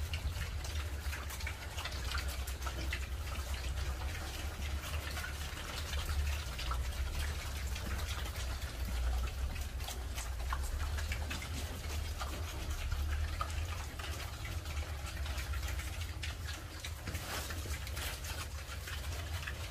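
Pigs grunt as they feed.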